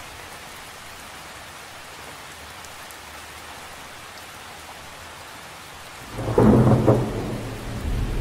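Rain patters steadily on the surface of a lake.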